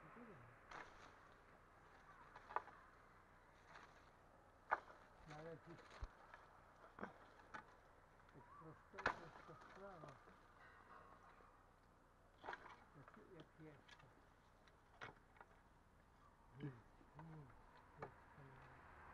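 A wooden pole knocks sharply against tree branches.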